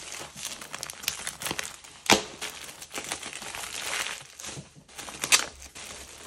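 A plastic mailer bag crinkles and rustles.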